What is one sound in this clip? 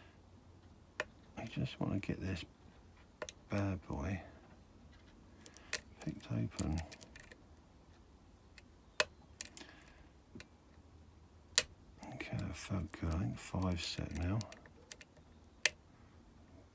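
Metal picks tick and click softly inside a lock.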